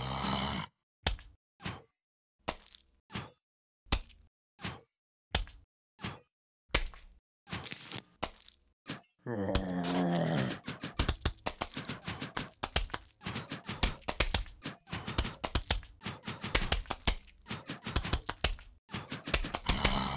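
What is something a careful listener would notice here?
Cartoon plants fire peas with quick, repeated popping shots.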